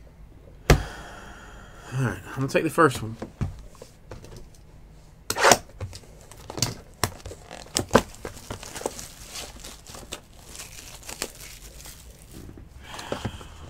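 A cardboard box is handled and tapped with sharp knocks.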